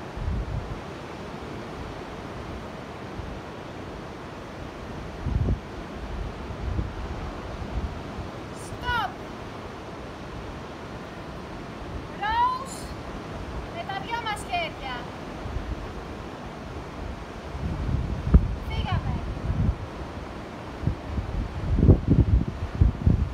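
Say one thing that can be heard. Waves wash onto the shore in the distance.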